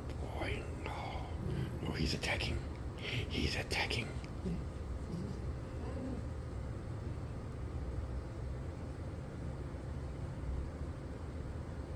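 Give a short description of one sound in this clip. A hand rubs and scratches through thick fur.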